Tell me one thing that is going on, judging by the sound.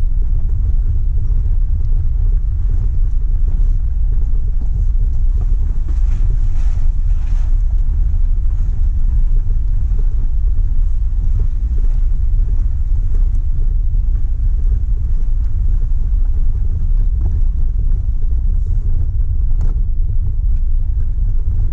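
A vehicle's engine rumbles steadily, close by.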